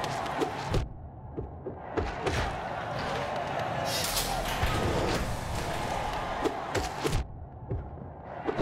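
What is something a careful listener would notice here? Sharp sword slashes strike again and again.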